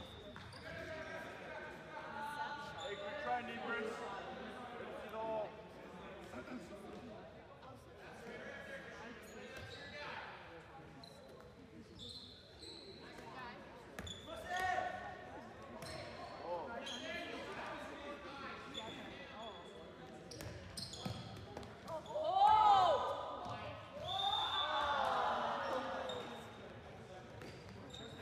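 Young players shout and call to each other in a large echoing gym.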